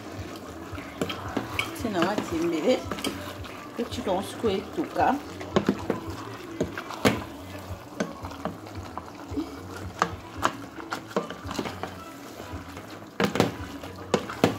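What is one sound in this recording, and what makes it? A wooden spoon stirs and scrapes food in a metal pot.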